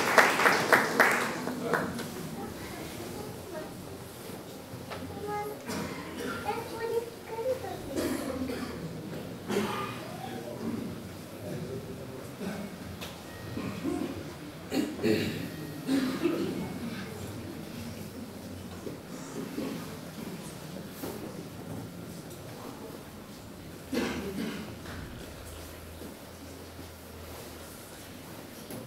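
A men's choir sings together in a large echoing hall.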